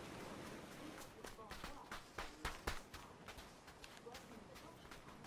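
Footsteps run across the ground.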